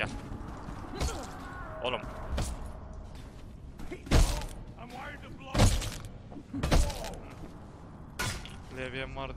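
Heavy blows thud as two men brawl.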